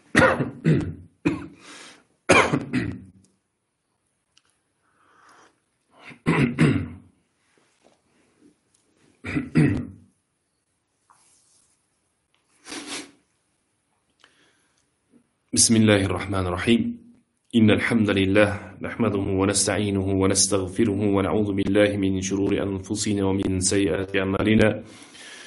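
A man speaks with emphasis into a microphone, with pauses between phrases.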